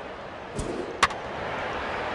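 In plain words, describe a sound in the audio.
A wooden bat cracks against a baseball.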